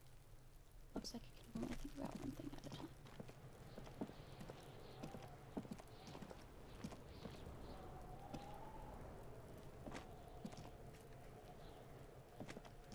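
Footsteps crunch slowly over rough ground.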